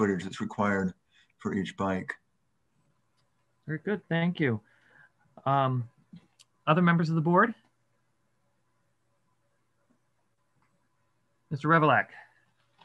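A middle-aged man speaks calmly over an online call, in short phrases with pauses.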